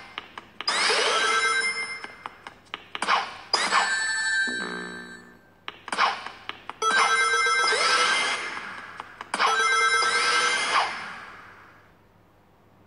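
Bright game sound effects chime, jingle and whoosh in quick bursts.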